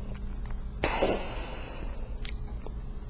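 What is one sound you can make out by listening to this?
A woman sighs heavily.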